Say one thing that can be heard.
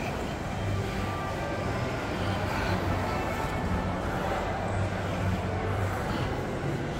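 A crowd murmurs indistinctly in a large echoing hall.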